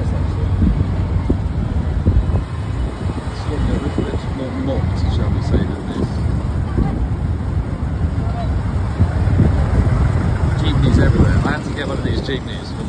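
Motorcycle tricycle engines putter nearby in traffic.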